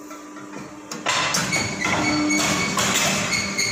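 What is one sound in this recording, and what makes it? A heavy press closes with a loud mechanical clunk.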